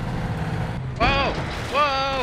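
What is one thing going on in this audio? A young man speaks into a headset microphone.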